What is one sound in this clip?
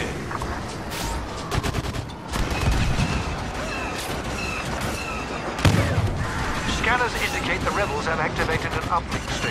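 Blaster fire crackles in rapid bursts.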